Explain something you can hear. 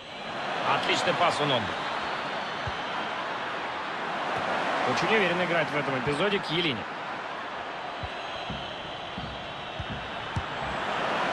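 A large crowd murmurs and roars steadily in a stadium.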